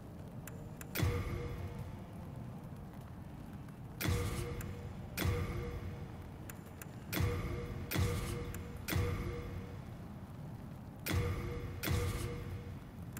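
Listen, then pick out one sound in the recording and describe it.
Soft menu chimes ring out several times, each fading quickly.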